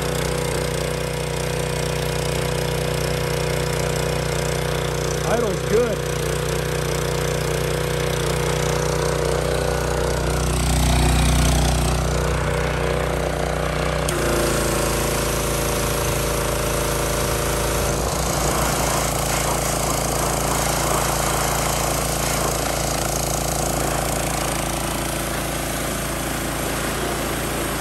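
A petrol engine runs steadily close by.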